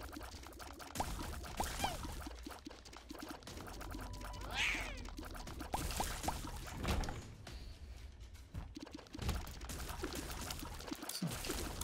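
Game sound effects pop and splat rapidly.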